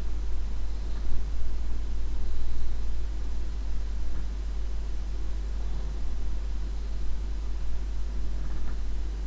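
A man handles small objects nearby with soft rustling and clicks.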